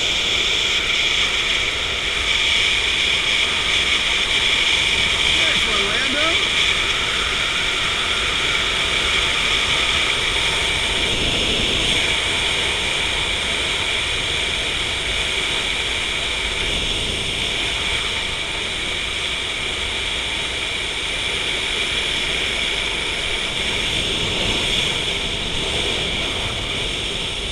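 Wind rushes steadily past outdoors high in the air.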